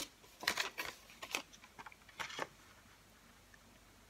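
A paper punch clicks as it is pressed.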